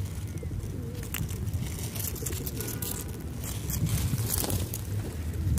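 Pigeons flap their wings as they take off.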